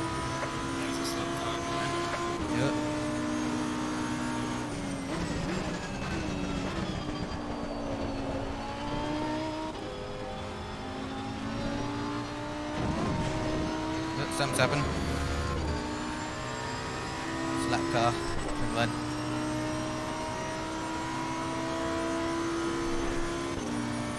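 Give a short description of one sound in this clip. A racing car engine roars steadily, rising and falling in pitch as it shifts gears.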